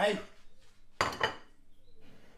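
A ceramic plate is set down on a wooden board with a knock.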